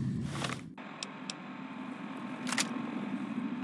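Short electronic clicks sound as a handheld device menu is browsed.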